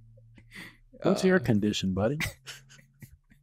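A man laughs heartily close to a microphone.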